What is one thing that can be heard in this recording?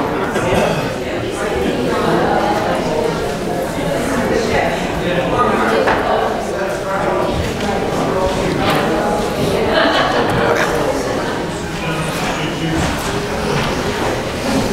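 Many elderly men and women chat and greet each other at once in a large echoing hall.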